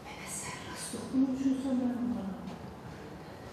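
A woman's voice calls out briefly nearby, falling in pitch.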